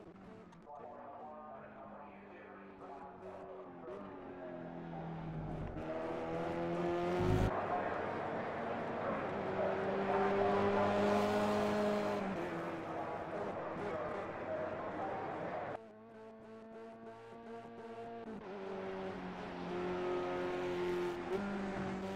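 Racing car engines roar and rev loudly, rising and dropping in pitch as the cars speed past.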